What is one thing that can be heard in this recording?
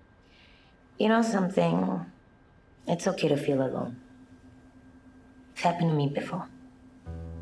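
A young woman speaks gently and warmly close by.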